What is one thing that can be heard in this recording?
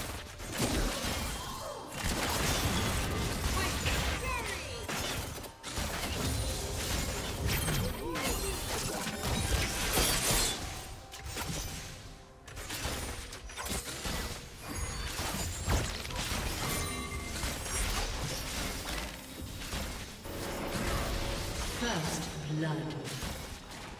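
Spells and weapons clash with whooshes and bursts in a video game battle.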